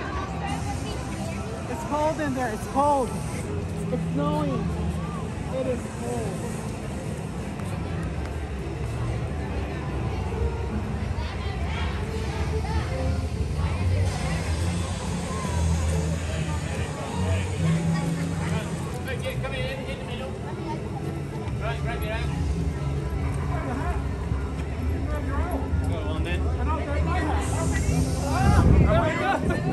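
A crowd chatters outdoors all around.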